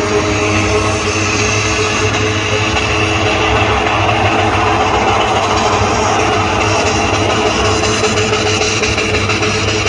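A car engine roars loudly in a burnout.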